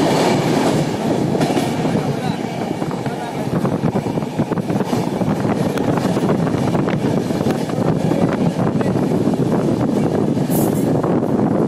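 A passenger train's wheels clatter on the rails in the open air.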